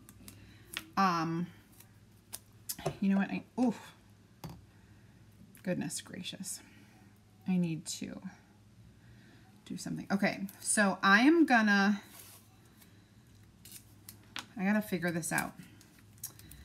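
A middle-aged woman talks calmly and closely into a microphone.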